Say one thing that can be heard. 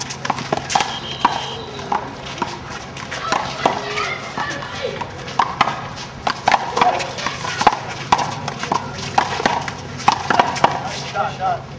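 A small rubber ball slaps sharply against a wall and the ground, over and over.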